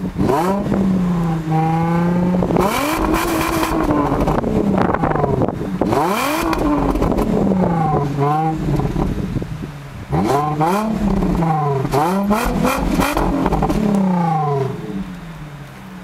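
A car engine revs up and down hard, its exhaust roaring loudly.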